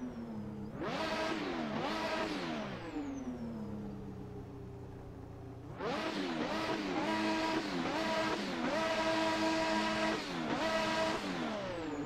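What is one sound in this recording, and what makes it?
A racing car engine revs up and down in sharp bursts.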